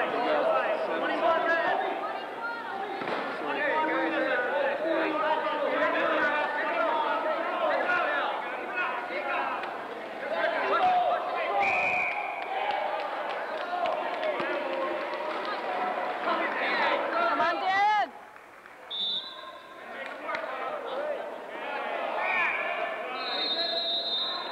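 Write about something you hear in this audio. A crowd of people chatter and call out loudly in a large echoing hall.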